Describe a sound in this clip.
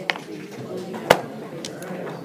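A chess clock button is pressed with a sharp click.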